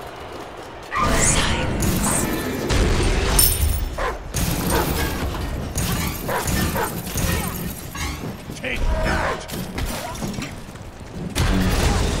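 Magic blasts and weapons clash in a noisy fight.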